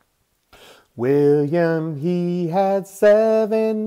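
A man sings loudly and expressively close to a microphone.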